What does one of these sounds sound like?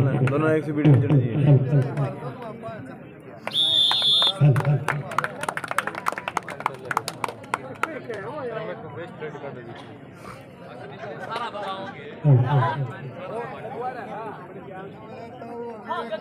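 A crowd of young men and boys shouts and cheers outdoors.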